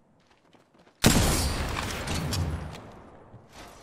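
A rifle shot cracks loudly and rumbles away.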